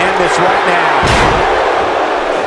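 A heavy body slams onto a wrestling mat with a loud thud.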